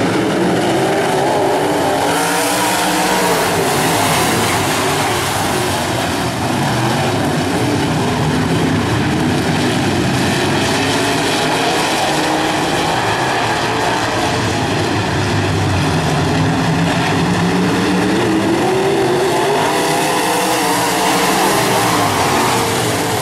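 Race car engines roar loudly around a dirt track.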